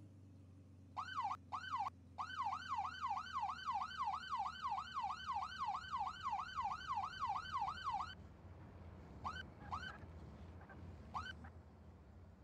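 A police siren wails in a fast, rising and falling yelp, then cuts off with a few short chirps.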